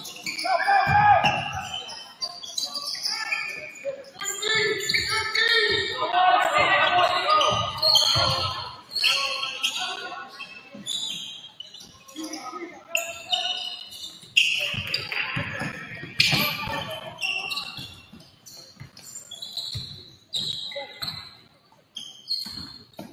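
A crowd of spectators talks and cheers in an echoing gym.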